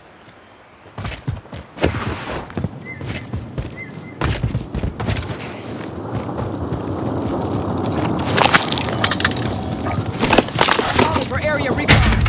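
Footsteps run quickly over rough ground.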